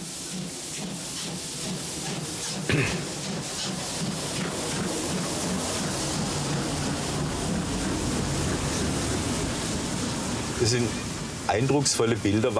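A steam locomotive chuffs steadily as it pulls away.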